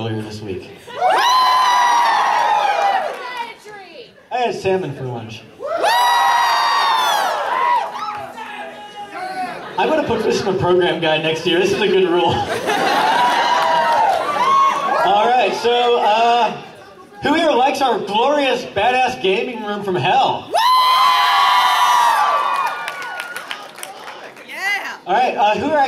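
A young man sings loudly into a microphone, heard over loudspeakers in an echoing hall.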